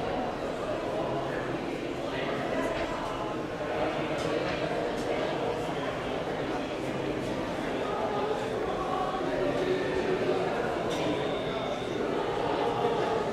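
A crowd murmurs steadily nearby.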